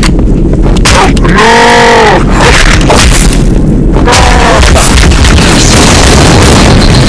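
A sword swings with a loud electric crackle and whoosh.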